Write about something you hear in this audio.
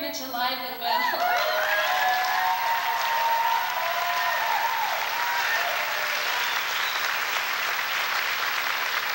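A crowd claps loudly.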